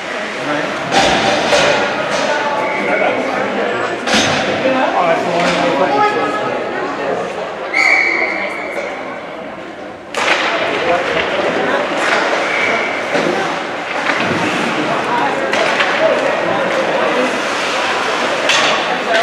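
Hockey sticks clack sharply against a puck.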